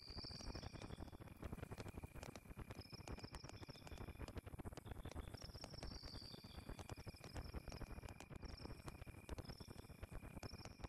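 A campfire crackles and pops steadily.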